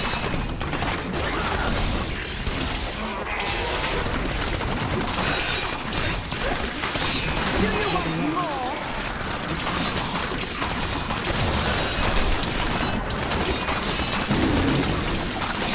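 Electric lightning zaps and crackles.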